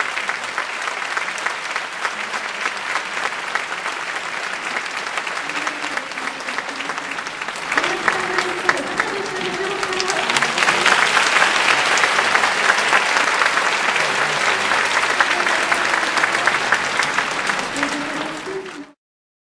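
A brass band plays in a large hall.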